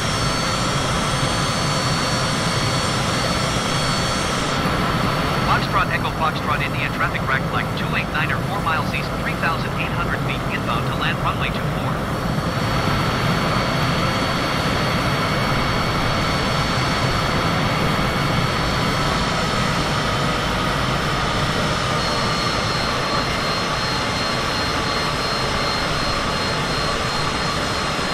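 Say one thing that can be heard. A jet engine hums steadily in flight.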